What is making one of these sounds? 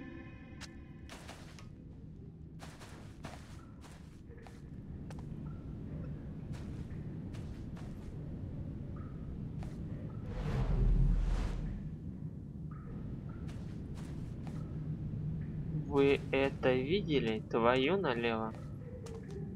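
Footsteps tap slowly on a hard tiled floor.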